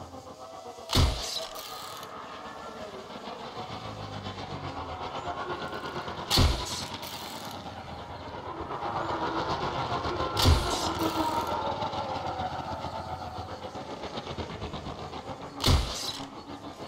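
A bowstring twangs sharply as an arrow is loosed, now and then.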